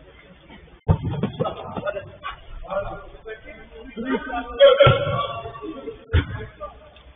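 Young men shout to each other during play.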